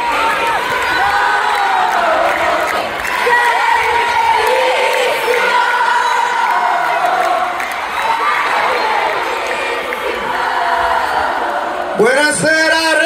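A large crowd screams and sings along loudly outdoors.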